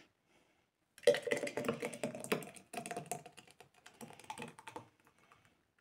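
Thick liquid pours and splashes from a jug into a jar.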